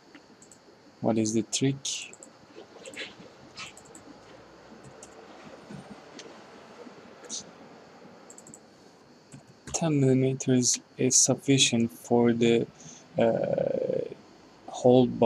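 A young man talks calmly and close into a microphone, with pauses.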